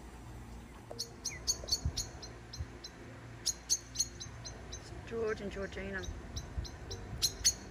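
A bird gives sharp, repeated chirps.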